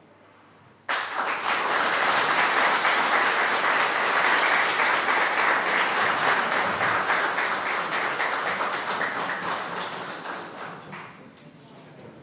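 An audience applauds loudly in a large hall, then the clapping slowly fades.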